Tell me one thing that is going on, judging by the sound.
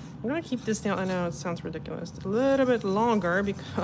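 A nail file scrapes against a fingernail.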